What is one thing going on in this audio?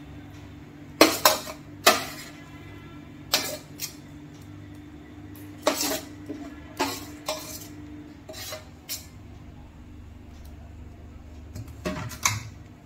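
A spoon knocks against a glass jar as food is packed in.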